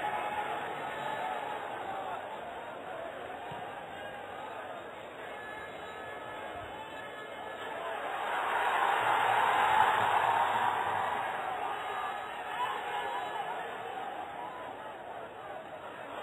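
A stadium crowd roars, swelling loudly as an attack nears the goal and then fading.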